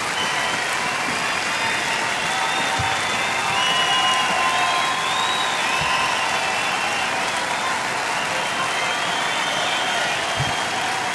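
A large crowd cheers and screams in a big echoing hall.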